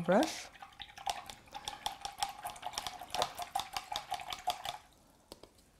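A brush swishes and clinks in a jar of water.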